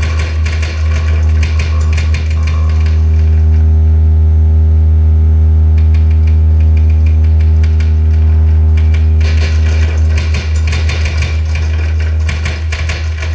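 A deep electronic drone hums steadily through loudspeakers.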